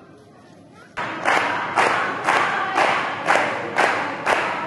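A group of women sing together.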